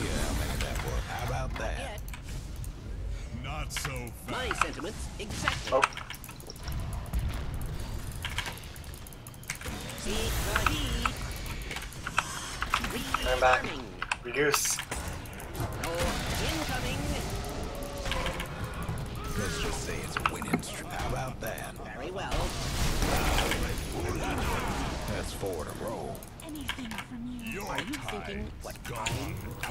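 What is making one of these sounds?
Game effects clash and zap during a battle.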